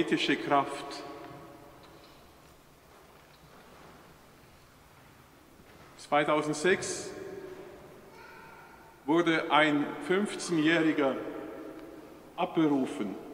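A middle-aged man speaks slowly and solemnly through a microphone in a large echoing hall.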